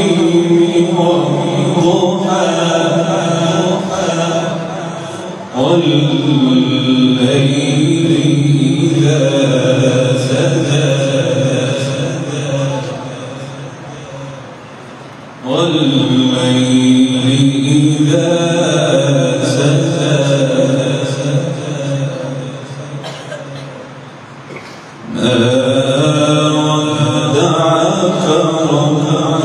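A young man chants in long, melodic phrases through a microphone and loudspeakers, with a strong echo.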